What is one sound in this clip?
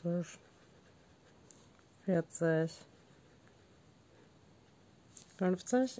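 A felt-tip pen dabs and scratches softly on paper.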